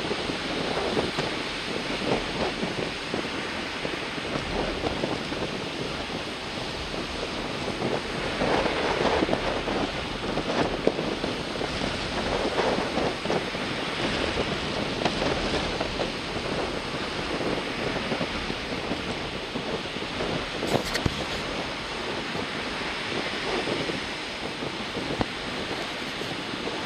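Strong wind blows across open water.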